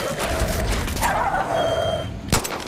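A wolf snarls and growls.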